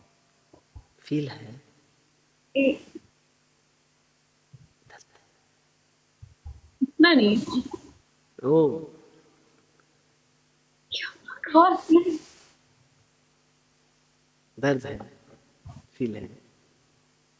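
A young man talks and laughs over an online call.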